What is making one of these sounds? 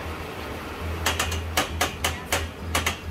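A spoon taps and scrapes against a plastic tub.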